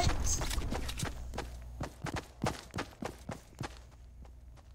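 Footsteps patter quickly over grass.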